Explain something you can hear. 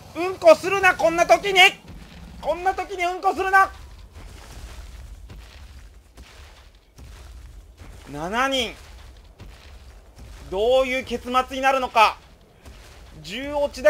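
Heavy footsteps of a large creature thud steadily on grass.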